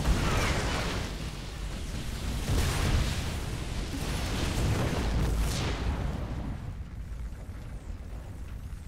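Rapid gunfire and blasts rumble in a busy battle.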